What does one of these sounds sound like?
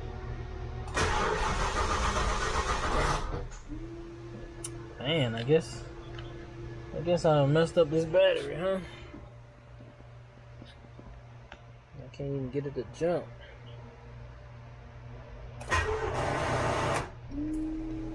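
A car engine's starter cranks in short bursts.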